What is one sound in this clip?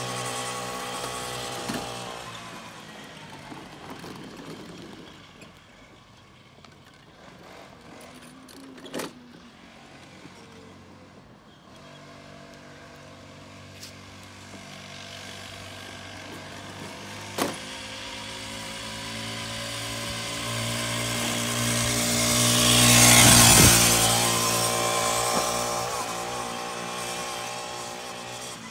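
A small motorbike engine buzzes steadily, growing loud as it passes close by and then fading away.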